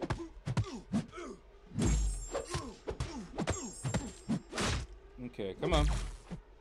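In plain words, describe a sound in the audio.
Punches and blows land with sharp thuds in a game.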